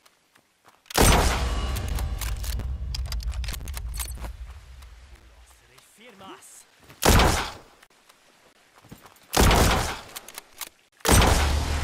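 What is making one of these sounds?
A sniper rifle fires with a loud, booming crack.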